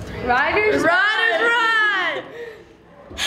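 Young girls cheer loudly in a high, rising and falling whoop close to a microphone.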